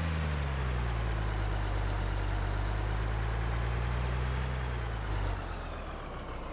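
A truck engine rumbles steadily, rising and falling slightly.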